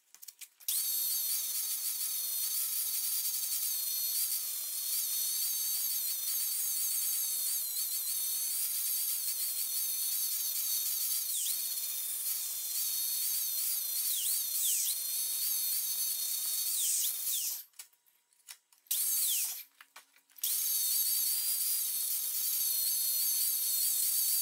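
An electric grinder whines steadily as its spinning pad polishes metal, stopping briefly before starting again.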